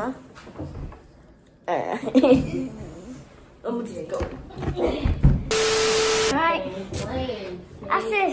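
Children talk and laugh excitedly close by.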